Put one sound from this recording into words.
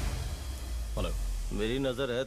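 A man speaks firmly into a phone.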